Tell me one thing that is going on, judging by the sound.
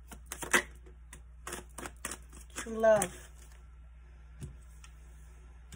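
Cards tap and slide onto a hard surface.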